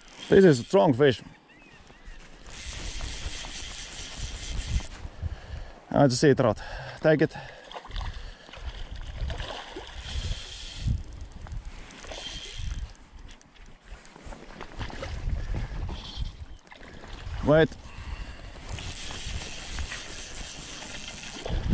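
Water laps gently at the shore.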